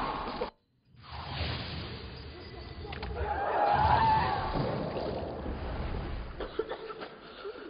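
Water bubbles and churns in a low, muffled rush.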